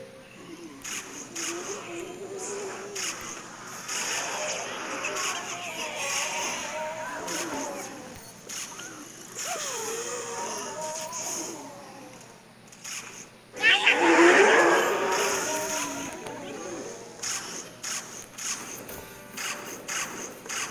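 Cartoon plants fire with quick popping and thudding sounds.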